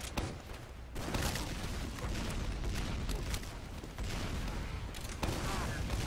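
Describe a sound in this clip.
A heavy rotary gun whirs and fires rapidly.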